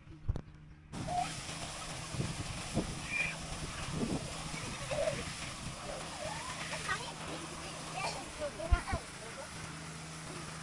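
Water gushes noisily from a pipe onto the ground.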